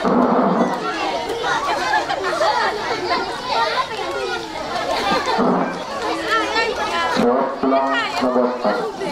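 Men and women sing together loudly through a loudspeaker.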